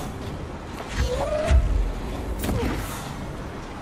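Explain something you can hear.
A gun fires sharp shots.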